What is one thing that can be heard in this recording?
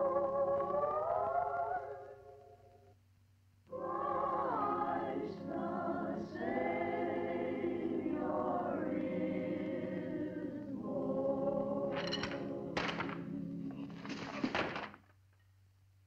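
A children's choir sings a slow, gentle song.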